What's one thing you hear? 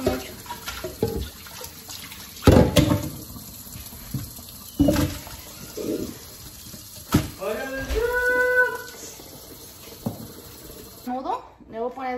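Water runs steadily from a tap into a metal sink.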